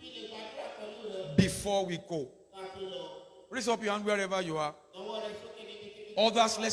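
A man preaches with animation into a microphone, heard through loudspeakers.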